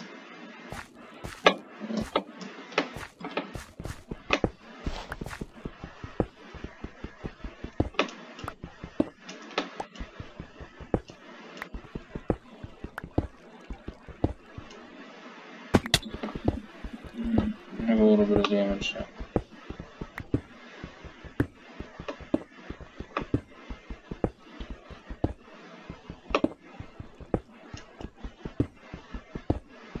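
A pickaxe chips rapidly at stone blocks, with quick repeated clicks.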